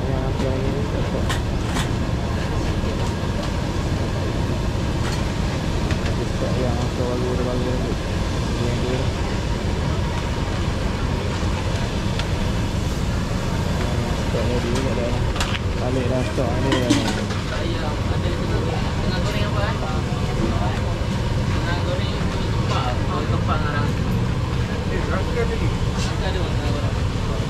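Hot oil sizzles and bubbles in a wok.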